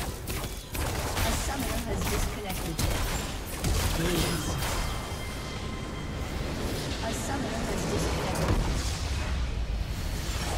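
Fantasy battle effects crackle and clash rapidly.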